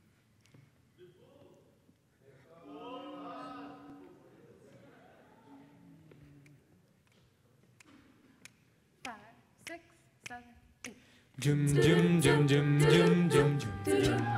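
A mixed group of young voices sings together in a large echoing hall, quietly at first and then loudly.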